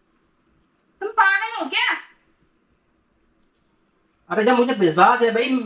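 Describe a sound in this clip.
A young woman answers close by.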